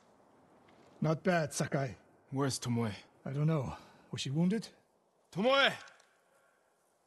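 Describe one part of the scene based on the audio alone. A man speaks calmly in a low voice, asking short questions.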